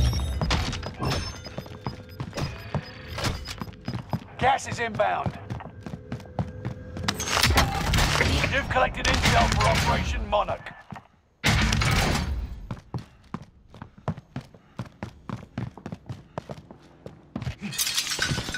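Footsteps thud quickly across a wooden floor indoors.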